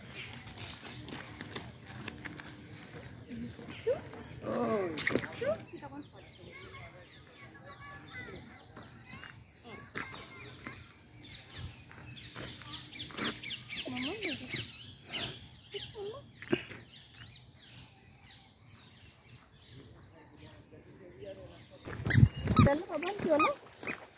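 A woman talks softly to a small child close by.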